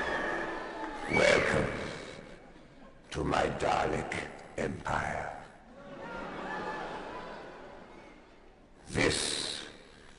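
A man speaks slowly in a harsh, menacing voice through loudspeakers.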